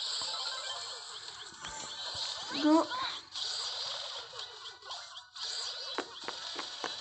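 Game weapons fire with short zapping bursts.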